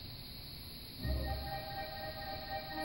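An orchestra plays in a large hall.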